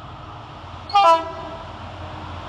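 A train horn sounds a short, loud blast.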